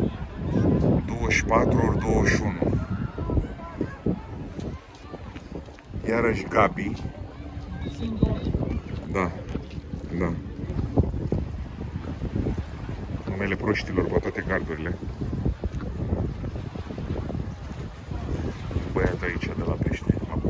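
Waves wash softly against rocks.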